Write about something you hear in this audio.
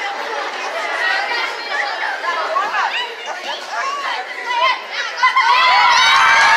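A crowd of children chatters in a large echoing hall.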